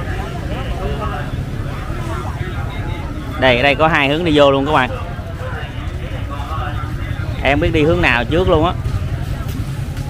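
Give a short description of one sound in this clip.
People chatter faintly in the background.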